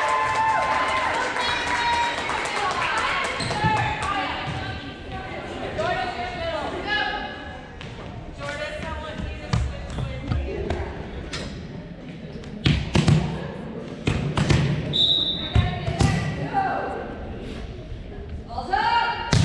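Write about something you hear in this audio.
Young men and women call out and chatter in a large echoing hall.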